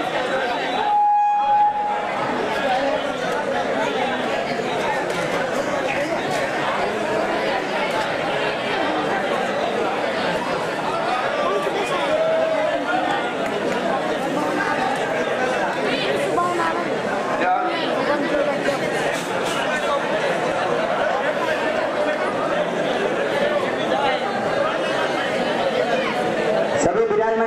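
A large crowd of women and men murmurs and chatters indoors.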